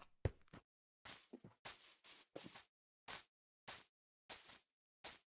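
Footsteps rustle on grass.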